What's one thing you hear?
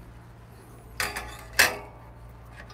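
A small scale clacks down onto a metal tray.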